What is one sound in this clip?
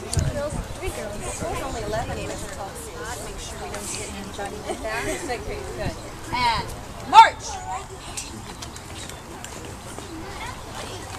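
Many children chatter and call out nearby, outdoors.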